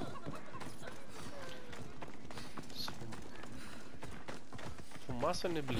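Footsteps run quickly over dirt.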